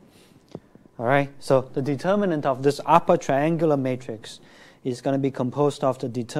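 A man lectures calmly into a microphone.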